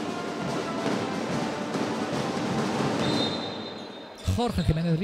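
A crowd cheers and shouts loudly in a large echoing hall, then dies down.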